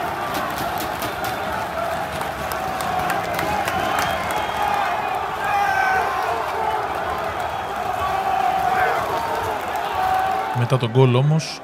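A large stadium crowd chants and sings loudly in the open air.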